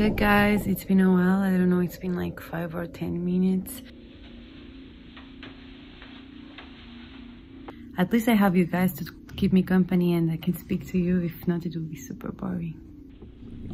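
A young woman talks softly and close to the microphone.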